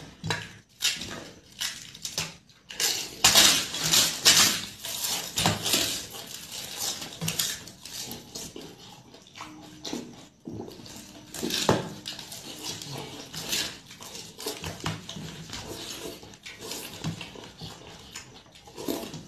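A man chews and slurps food loudly close by.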